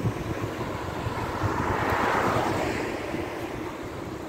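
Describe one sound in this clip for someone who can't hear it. A car drives past on the street.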